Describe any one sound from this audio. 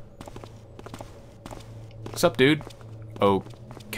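Footsteps tap on stone paving.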